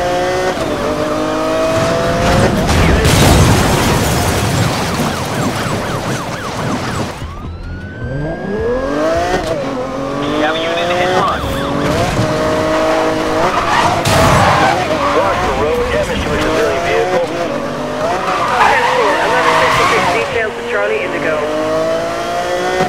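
A sports car engine roars and revs, rising and falling in pitch.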